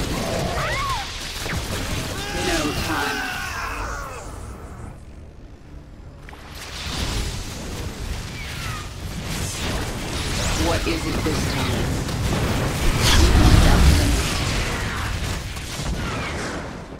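Creatures screech and snarl in a fight.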